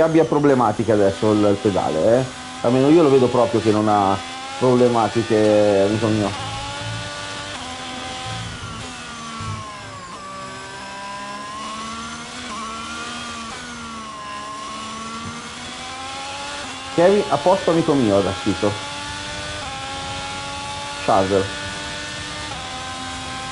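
A racing car engine whines and revs up and down through the gears.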